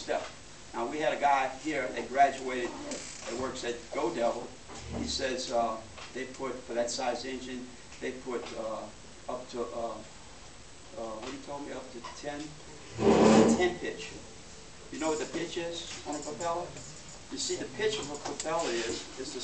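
A man speaks with animation to a room, heard from a short distance.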